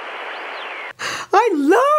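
A woman exclaims excitedly through a television speaker.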